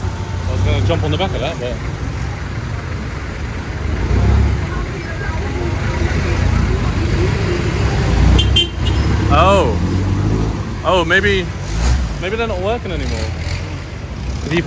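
City traffic rumbles nearby outdoors.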